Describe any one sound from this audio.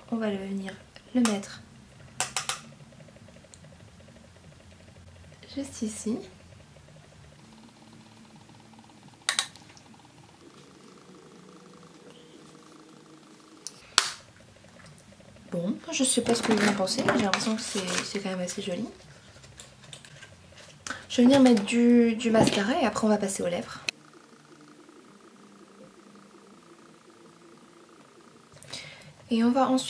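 A young woman talks calmly, close to a microphone.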